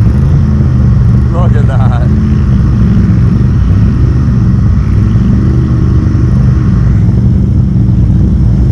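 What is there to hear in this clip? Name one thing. Several all-terrain vehicle engines idle and rumble nearby.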